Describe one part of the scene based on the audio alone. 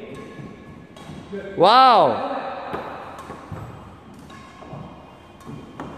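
A racket strikes a shuttlecock with sharp taps.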